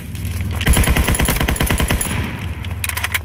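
A machine gun fires a rapid burst of shots.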